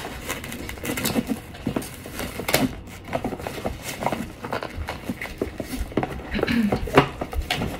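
Cards shuffle and flick in a person's hands.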